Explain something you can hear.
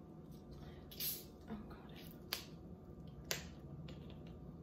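A bottle cap clicks as it is twisted.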